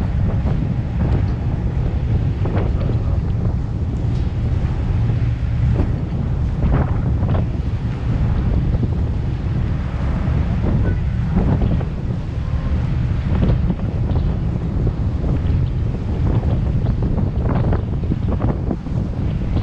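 Wind buffets loudly outdoors on a moving boat.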